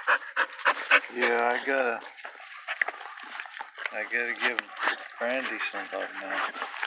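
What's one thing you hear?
A dog whines softly.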